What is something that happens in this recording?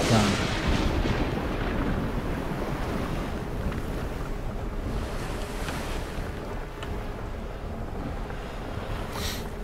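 Strong wind howls.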